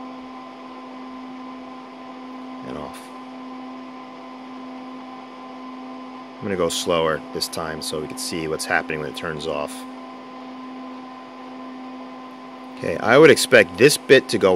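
A computer hums steadily.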